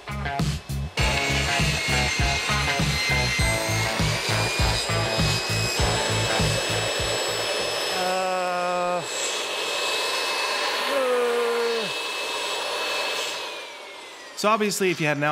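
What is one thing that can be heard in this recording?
A table saw whines as it cuts through a board.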